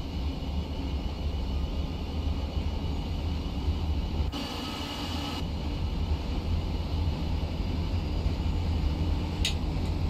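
A train's electric motors hum and wheels rumble steadily along the rails.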